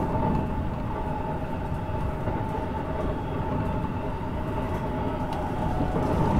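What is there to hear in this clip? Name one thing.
A train rumbles steadily along its tracks, heard from inside a carriage.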